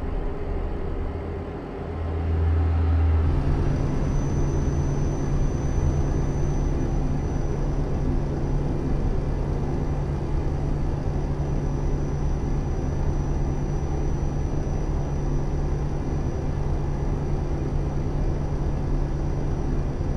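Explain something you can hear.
A simulated diesel truck engine drones at cruising speed, heard from inside the cab.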